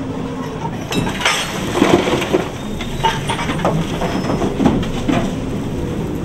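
Coal rumbles and clatters as it pours from a bucket into a railway wagon.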